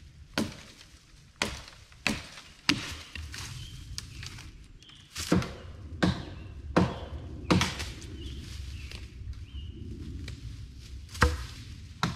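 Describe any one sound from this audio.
An axe chops into wood with sharp knocks.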